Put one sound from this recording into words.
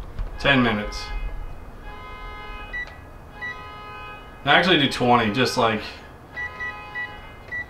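A microwave beeps as its buttons are pressed.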